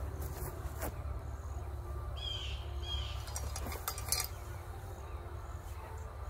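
Metal parts of a tripod click and knock as a man handles it.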